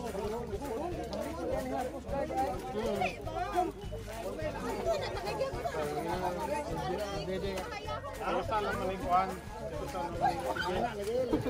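Several women and girls talk and laugh nearby, outdoors.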